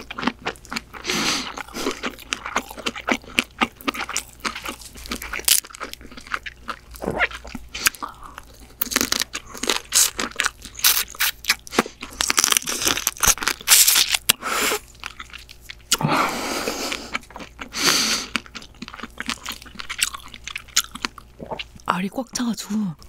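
A young woman chews and slurps seafood close to a microphone.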